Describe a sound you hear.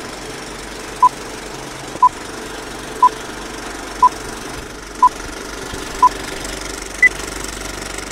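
Short high beeps sound once a second, the last one higher.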